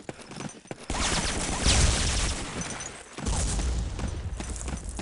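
A loud blast booms and rumbles.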